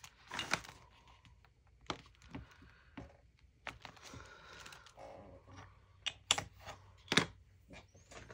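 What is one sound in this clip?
Paper rustles and taps against a tabletop.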